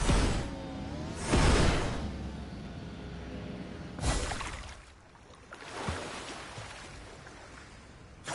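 Water splashes and rushes under a gliding board.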